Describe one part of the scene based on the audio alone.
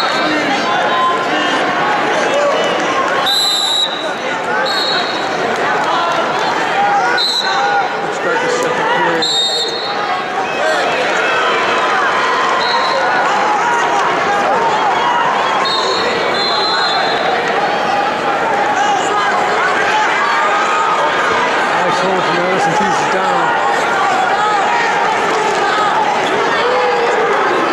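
A large crowd murmurs and cheers, echoing through a big hall.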